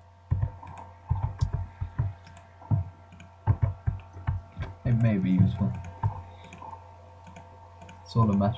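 Short game menu clicks sound repeatedly as items are moved.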